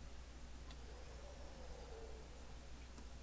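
A young woman speaks quietly into a microphone.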